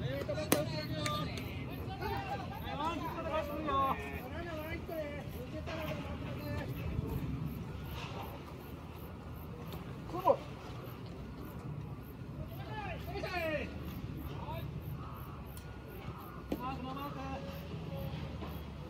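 Men call out and chatter across an open outdoor field.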